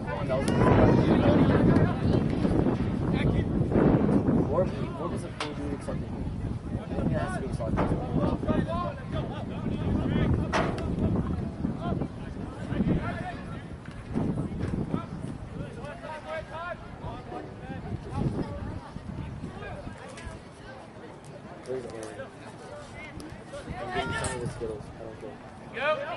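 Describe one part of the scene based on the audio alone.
A soccer ball is kicked with a dull thump.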